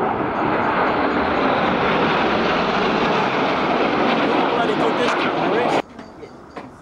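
A formation of jet planes roars loudly overhead.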